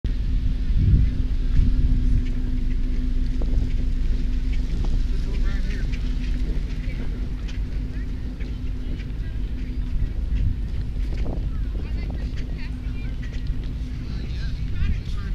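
A motor hums steadily close by.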